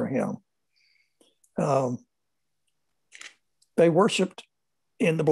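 An elderly man speaks calmly in short phrases through a microphone on an online call.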